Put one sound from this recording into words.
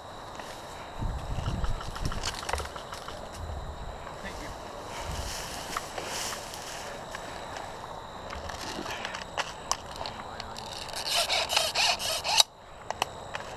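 Grass rustles and swishes as someone pushes through it.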